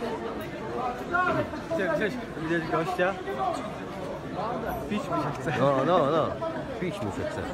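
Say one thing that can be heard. Men shout loudly nearby.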